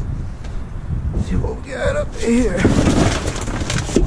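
Boots thud and scrape on a metal bin floor.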